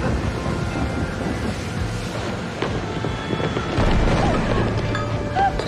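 Heavy waves crash and surge against a small boat.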